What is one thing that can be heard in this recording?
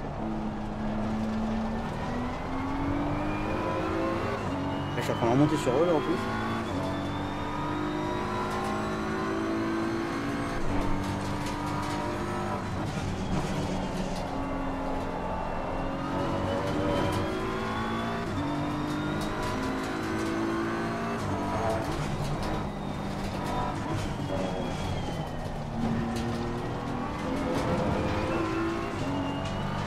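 A racing car engine revs high and shifts through gears.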